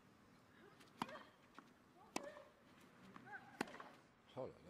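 A tennis ball is struck with sharp pops back and forth.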